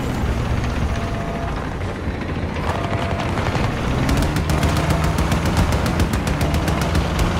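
An armoured vehicle's engine rumbles loudly as it drives.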